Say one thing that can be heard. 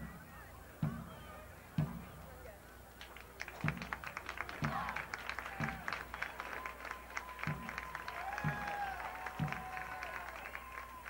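A marching band's drums beat out a steady, slow rhythm.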